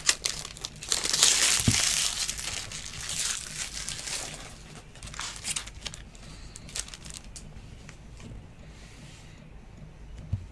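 Trading cards rustle and slide against each other as hands shuffle through them.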